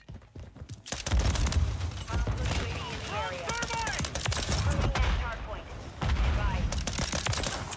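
Gunfire cracks in bursts in a video game.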